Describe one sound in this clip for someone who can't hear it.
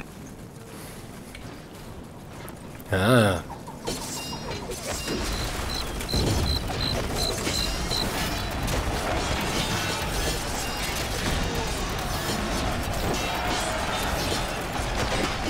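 Weapons clash and bang in a noisy battle.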